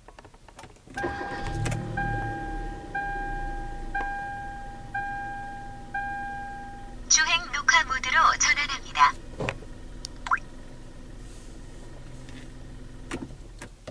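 A car engine starts and idles quietly.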